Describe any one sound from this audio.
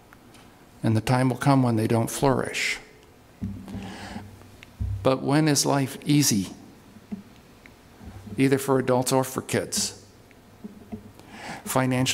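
A middle-aged man speaks with emphasis through a microphone.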